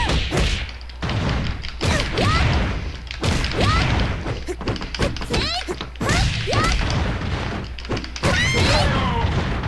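Punches and kicks land with heavy thuds and smacks in quick bursts.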